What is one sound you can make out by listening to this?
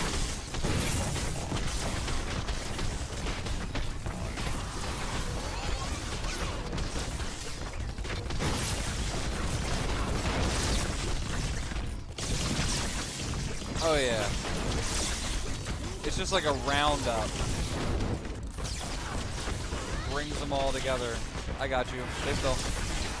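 Game weapons fire and blasts crash rapidly.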